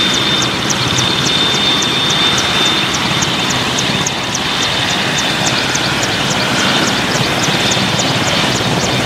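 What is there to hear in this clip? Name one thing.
A helicopter's rotor chops rapidly and steadily close by.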